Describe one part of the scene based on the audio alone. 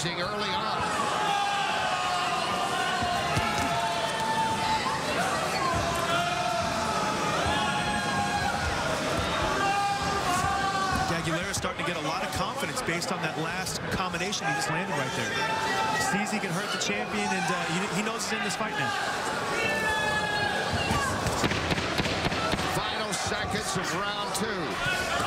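A crowd murmurs steadily in a large arena.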